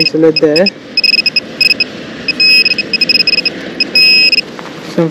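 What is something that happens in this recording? A metal detector beeps rapidly in short bursts.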